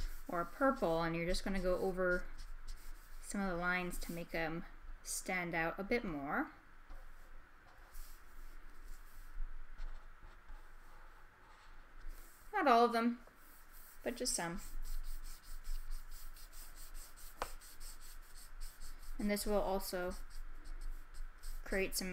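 A marker rubs and squeaks softly on paper.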